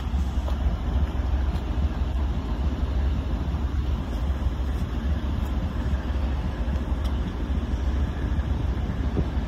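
A freight train rumbles past.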